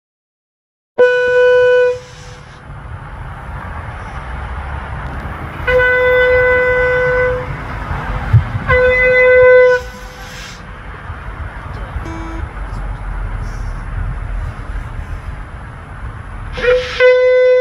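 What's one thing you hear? A young girl blows long steady notes on a horn, close to a microphone.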